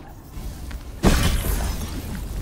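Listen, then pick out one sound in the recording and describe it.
A magical blast bursts with a loud whoosh and crackle.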